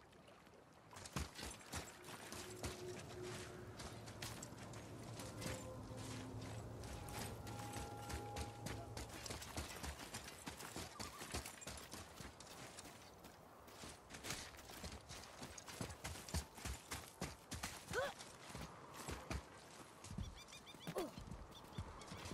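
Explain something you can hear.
Heavy footsteps crunch over rocky ground.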